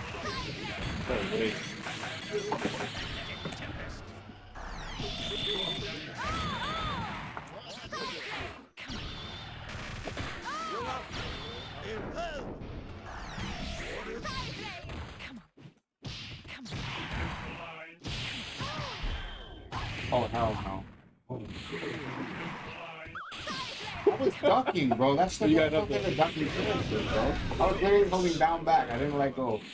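Fighting game sound effects of hits, blasts and explosions play rapidly.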